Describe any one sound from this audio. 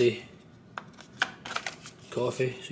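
Plastic coffee pods click and rattle as a hand picks one up.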